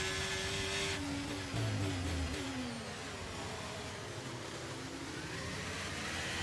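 A racing car engine winds down in pitch as the car slows for a corner.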